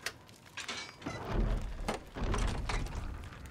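A wooden gate creaks open.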